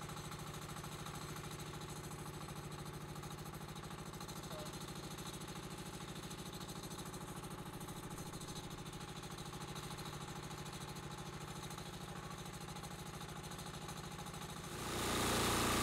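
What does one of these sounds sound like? An engine idles steadily with a low rhythmic chug.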